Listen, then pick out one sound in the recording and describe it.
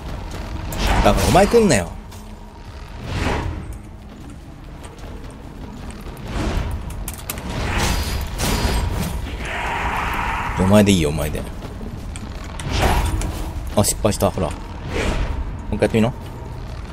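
Monsters screech and growl.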